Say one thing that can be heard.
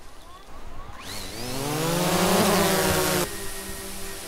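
A drone's propellers whine, rising in pitch as it lifts off.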